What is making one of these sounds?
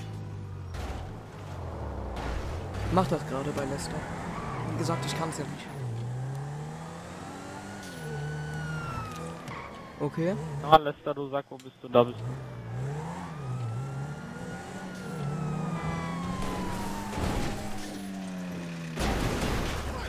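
A car engine revs up and down, rising and falling in pitch.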